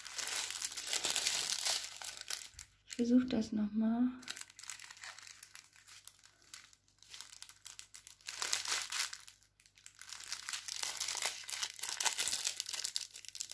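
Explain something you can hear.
Plastic packets crinkle and rustle as fingers handle them up close.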